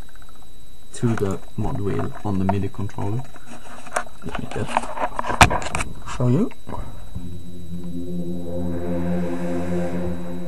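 An electronic keyboard plays gliding synth notes, then a sustained chord.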